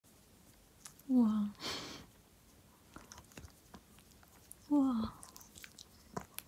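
A hand softly rustles as it rubs a dog's fur.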